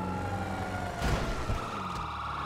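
A car crashes into a wall with a loud bang.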